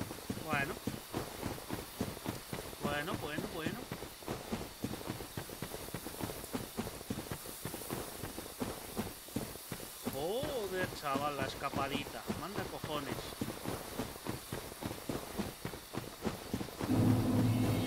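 Armoured footsteps crunch steadily on the ground.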